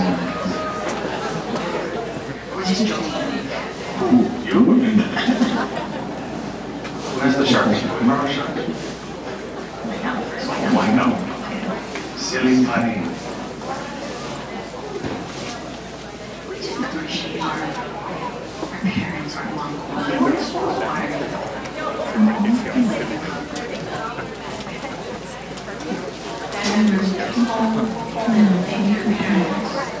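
A crowd of people chatter nearby outdoors in a large open space.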